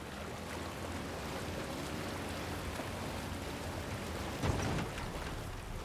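Water ripples around a small wooden boat gliding along.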